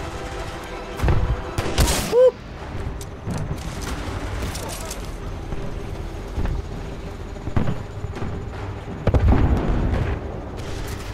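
Gunshots and explosions ring out.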